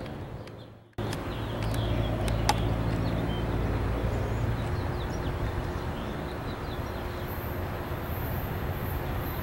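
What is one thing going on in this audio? A train approaches along the tracks from a distance.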